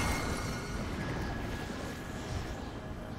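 A soft chime rings out.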